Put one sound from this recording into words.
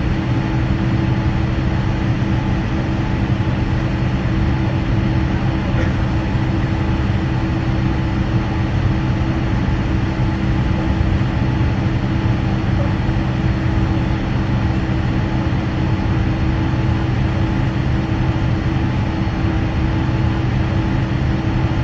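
An aircraft engine hums steadily and loudly while taxiing.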